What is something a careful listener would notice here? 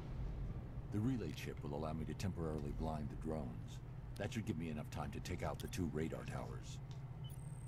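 A deep male voice speaks calmly through speakers.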